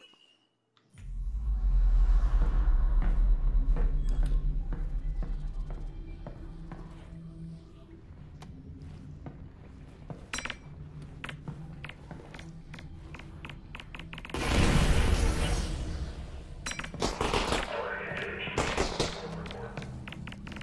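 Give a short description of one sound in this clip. Footsteps tap on a hard tiled floor.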